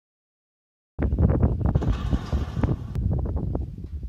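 A wooden barn door rumbles as it slides open.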